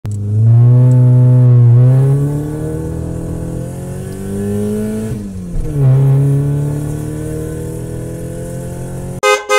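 A car engine hums as a car approaches.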